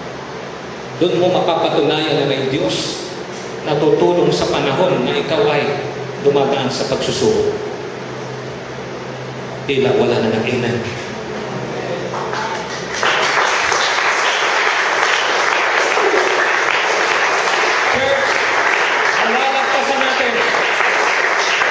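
A middle-aged man speaks with animation through a microphone and loudspeakers.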